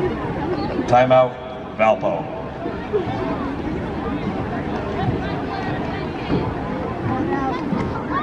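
A man announces a call over a loudspeaker in an open outdoor space.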